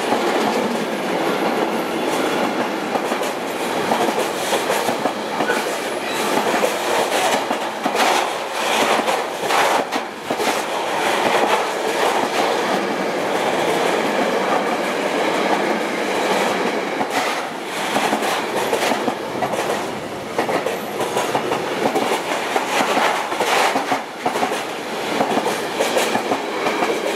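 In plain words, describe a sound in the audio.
Freight wagon wheels clatter over rail joints.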